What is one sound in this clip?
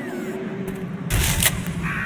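Flames roar and crackle nearby.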